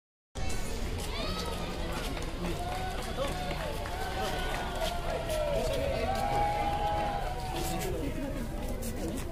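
A group of men walk on pavement with shuffling footsteps.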